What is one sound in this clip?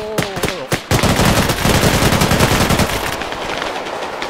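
A machine gun fires a long, rapid burst close by.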